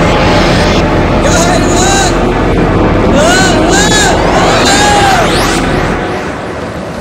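Electricity crackles and roars loudly, then fades.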